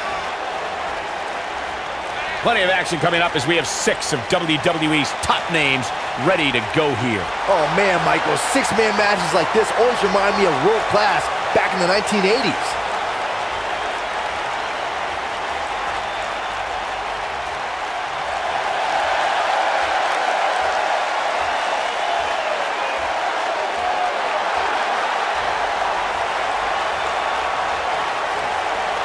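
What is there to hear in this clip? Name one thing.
A large crowd cheers and roars in a big arena, growing louder later on.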